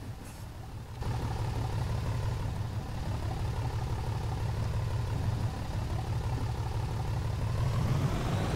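A bus engine grows louder as the bus pulls away.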